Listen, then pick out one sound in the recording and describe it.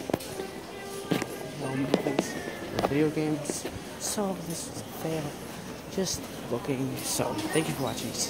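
A woman talks nearby in a large echoing hall.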